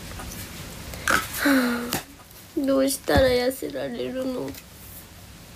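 A young woman speaks softly and close to the microphone.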